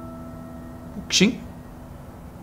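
A second young man asks a short question.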